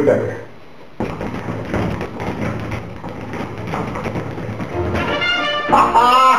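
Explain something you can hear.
A speed bag rattles in a fast, drumming rhythm under rapid punches.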